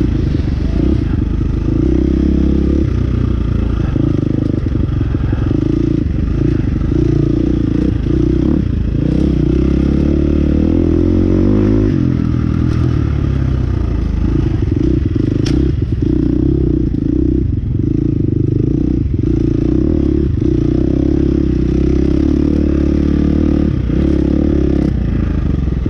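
A dirt bike engine roars close by, revving up and down as it rides.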